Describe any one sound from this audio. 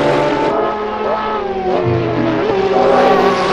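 Racing car engines shift gears with sharp changes in pitch.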